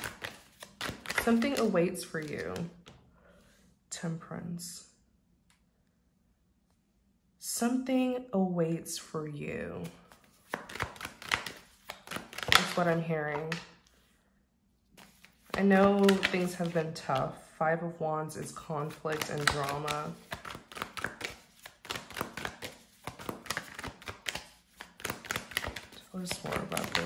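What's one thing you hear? Playing cards are shuffled by hand with soft, quick flicks.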